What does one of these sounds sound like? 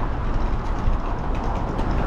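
A suitcase's wheels rattle over paving stones as it passes close by.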